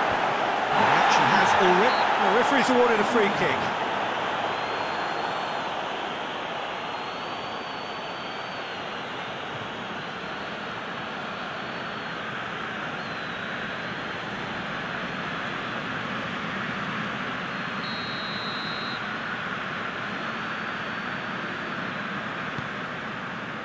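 A stadium crowd roars and cheers steadily.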